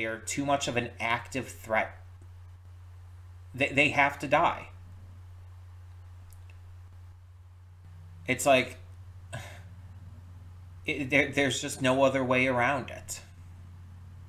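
A man speaks calmly, close to the microphone, in short bursts with pauses.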